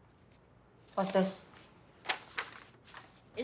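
A young girl speaks quietly, close by.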